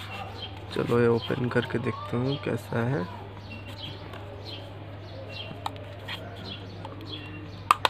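A small plastic device clicks and taps as it is handled.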